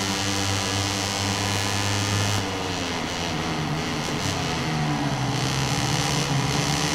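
A motorcycle engine roars at high revs, then drops in pitch as it slows down.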